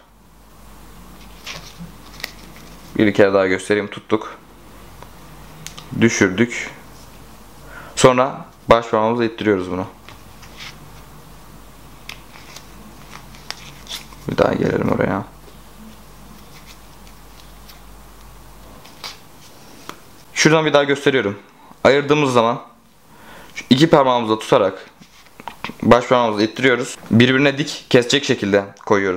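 Playing cards rustle and flick softly in a person's hands.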